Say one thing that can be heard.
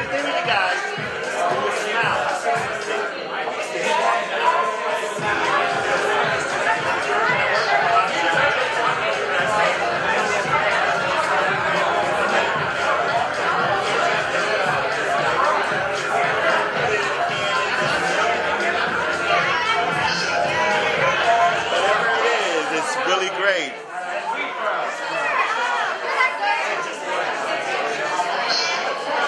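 A crowd of people chatter loudly all around.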